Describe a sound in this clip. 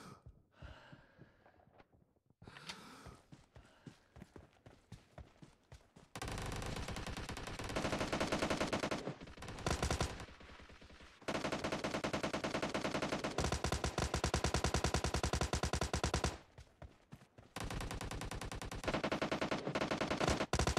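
Footsteps thud quickly on dirt.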